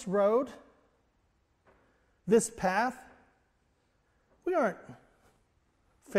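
A middle-aged man preaches with animation in short, emphatic bursts.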